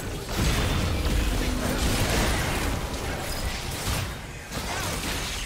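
Magic spells blast and crackle in a fantasy battle.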